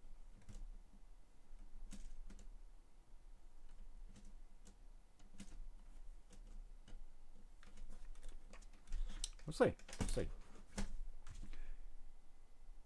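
Plastic bricks click and rattle as hands handle a model.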